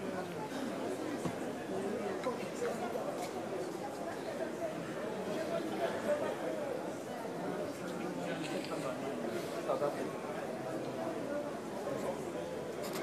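A large crowd chatters and murmurs steadily.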